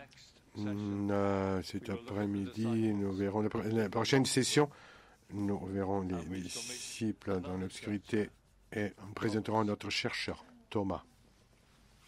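An elderly man reads out slowly through a microphone in a large hall.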